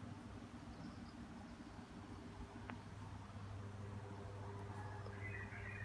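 A cat rolls about, rustling softly on a cloth cover.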